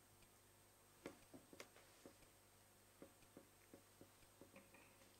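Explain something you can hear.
Laptop keys and mice click now and then.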